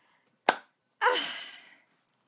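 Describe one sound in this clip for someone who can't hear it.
A woman exclaims loudly and excitedly, close by.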